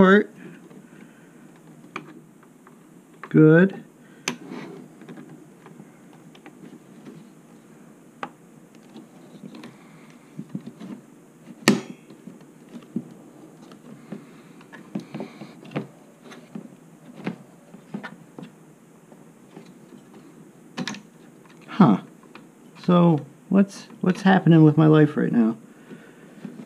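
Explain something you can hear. Plastic and metal computer parts click and clatter as hands fit them together.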